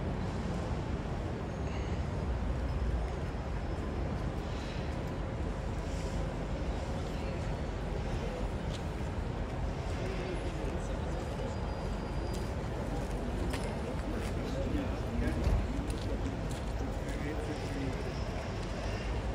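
A crowd murmurs in the distance outdoors.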